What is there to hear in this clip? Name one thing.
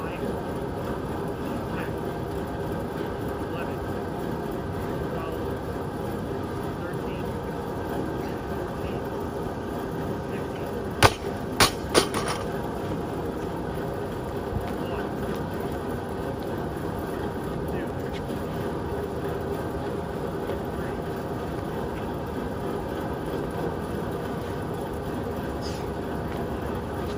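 A large fan blows with a steady rushing hum.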